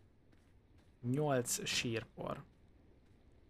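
A man speaks briefly and with animation into a close microphone.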